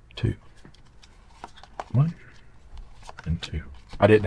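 A card is laid down on a wooden table with a soft tap.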